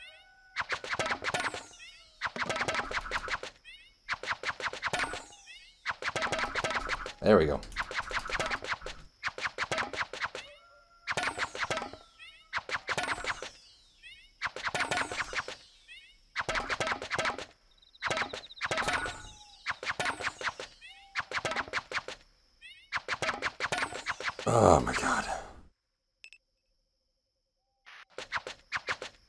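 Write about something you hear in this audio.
Cheerful electronic jingles and chimes play in short repeated bursts.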